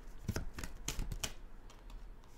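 Playing cards shuffle with quick flicks and clicks.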